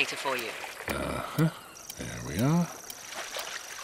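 A young man answers briefly.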